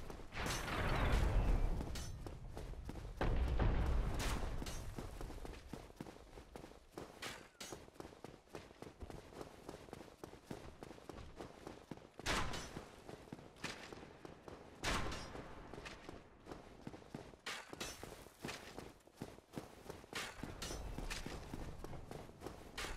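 Armoured footsteps run quickly on stone.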